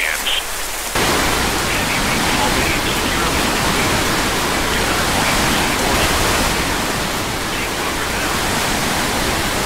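A strong storm wind roars loudly.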